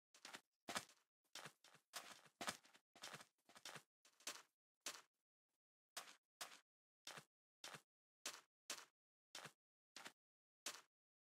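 Footsteps crunch steadily on sand.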